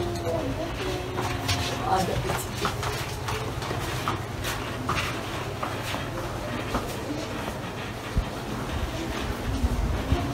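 A crowd of people murmurs and talks nearby.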